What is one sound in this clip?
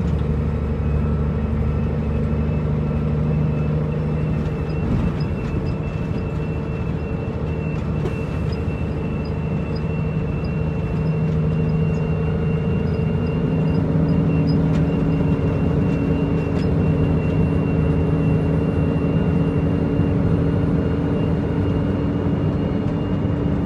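A diesel engine drones steadily inside a truck cab and rises in pitch as it speeds up.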